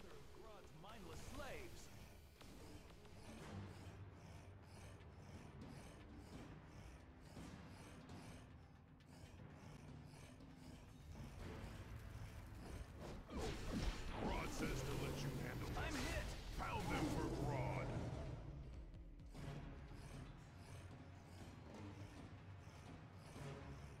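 Heavy footsteps thud as a large beast runs.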